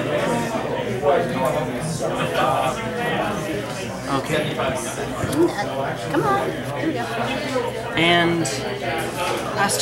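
Playing cards rustle and tap softly on a table.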